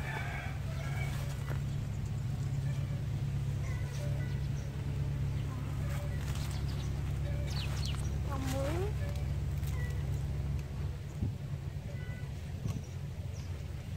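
Leaves and vines rustle close by as they are handled.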